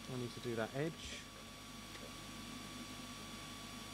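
A model board is set down on a table with a soft knock.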